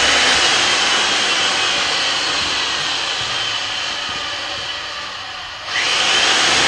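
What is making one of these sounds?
A power machine whirs and whines loudly, dipping briefly before surging again.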